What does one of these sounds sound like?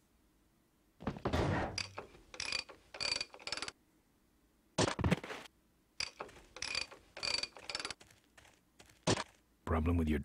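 Metal clanks and taps against an engine.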